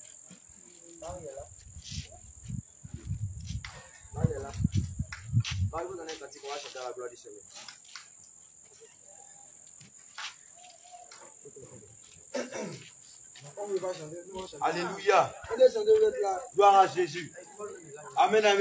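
Several women talk and call out close by, outdoors.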